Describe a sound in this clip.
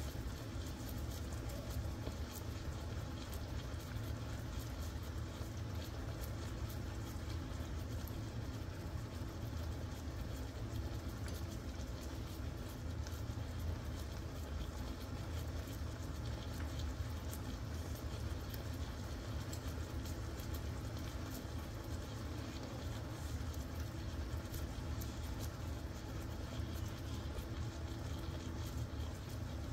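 Meat sizzles and bubbles steadily in a hot pan.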